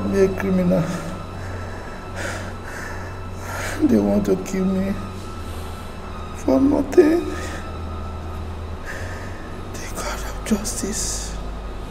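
A man sobs and moans in anguish close by.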